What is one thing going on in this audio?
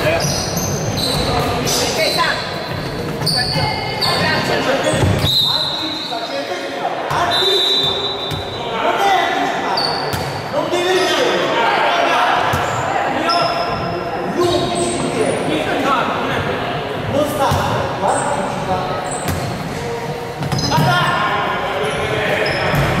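Young men shout and call out across the hall.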